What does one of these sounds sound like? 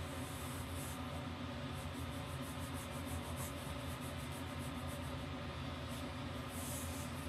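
A pen scratches quickly across paper.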